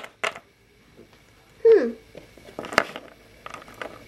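A small plastic toy taps lightly on a hard surface.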